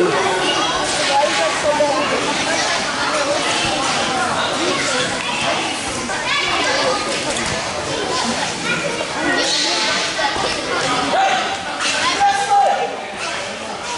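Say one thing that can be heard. Children chatter and shout nearby.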